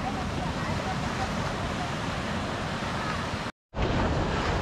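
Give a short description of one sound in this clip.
Ocean surf breaks on a rocky shore, heard outdoors in wind.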